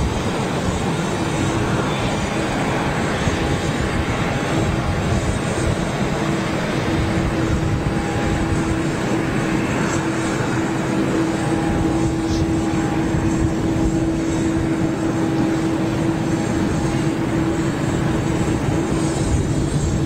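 A jet airliner's engines hum and whine steadily as it taxis close by.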